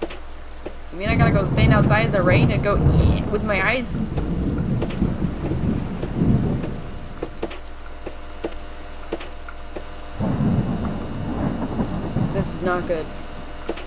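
A young woman talks into a microphone close by.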